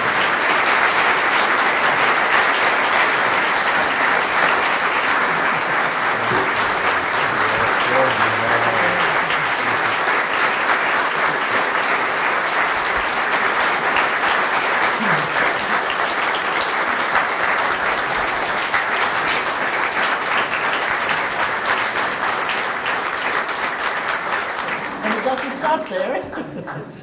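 A crowd applauds loudly and steadily in a large hall.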